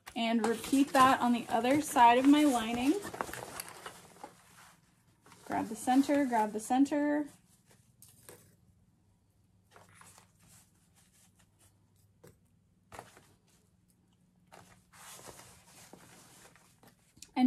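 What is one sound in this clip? Fabric rustles and crinkles as hands handle it.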